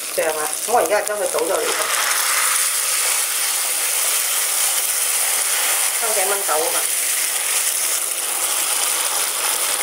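Liquid pours into a hot pan.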